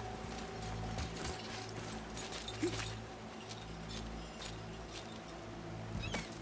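A metal chain clinks and rattles.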